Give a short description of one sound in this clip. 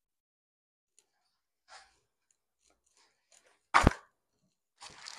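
A paper towel is pulled from a roll.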